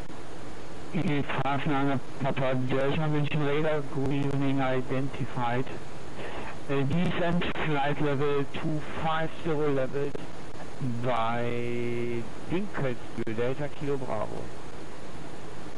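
A man talks casually into a microphone, close by.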